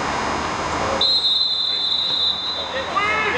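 A referee blows a long, shrill whistle.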